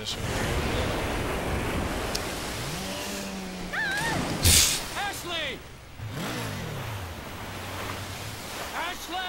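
Waves wash over open water.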